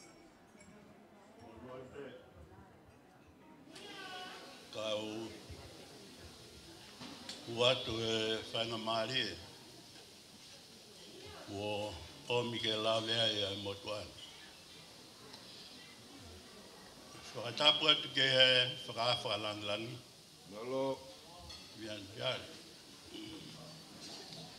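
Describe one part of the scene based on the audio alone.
A crowd of adults murmurs and chats in a large hall.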